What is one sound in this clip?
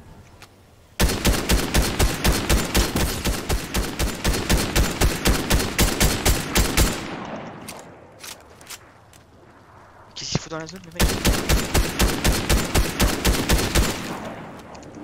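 A grappling launcher fires and reels in rapidly with fast rhythmic clicks.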